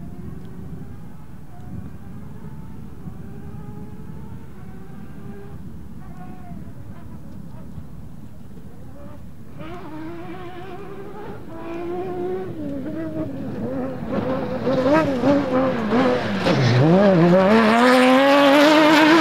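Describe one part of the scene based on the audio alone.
A rally car engine revs hard, growing louder as the car approaches and passes close by.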